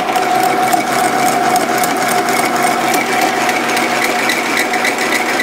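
A drill bit grinds into metal with a high scraping whine.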